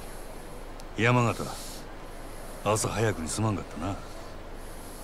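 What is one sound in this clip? A second man answers briefly and calmly, close by.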